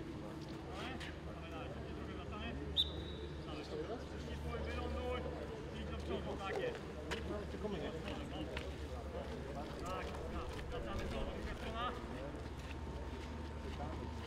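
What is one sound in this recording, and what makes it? Several young men talk and chat casually outdoors.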